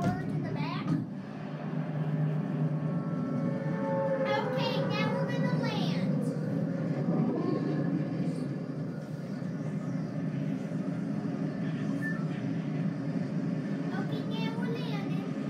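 Wind rushes steadily past a falling skydiver, heard through a loudspeaker.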